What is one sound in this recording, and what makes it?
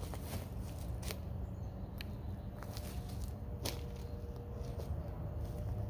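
Footsteps crunch on dry leaves and pine needles.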